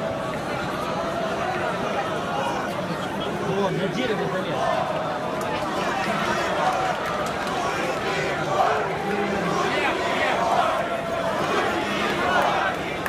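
A large crowd shouts and chants loudly outdoors.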